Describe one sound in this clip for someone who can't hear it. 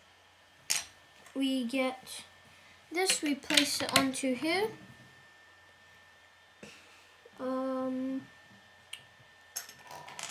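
Plastic toy bricks click as they are pressed together.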